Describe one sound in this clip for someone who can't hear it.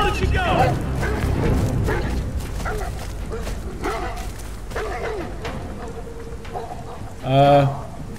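A person runs through dense undergrowth, leaves and branches rustling.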